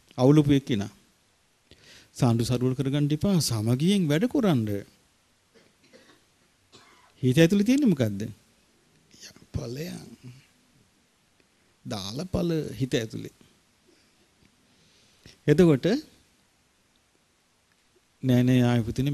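A man speaks calmly into a microphone, in bursts with pauses.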